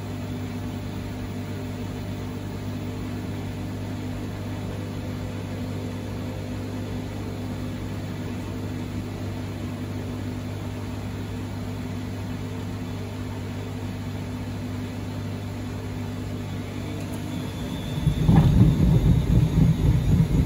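A washing machine drum hums steadily as it turns.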